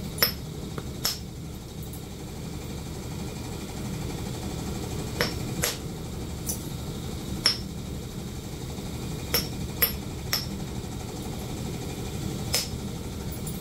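A rotary brush clicks sharply now and then as it catches.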